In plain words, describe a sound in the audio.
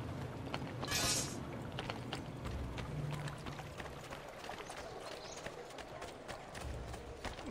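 Footsteps patter quickly on stone paving.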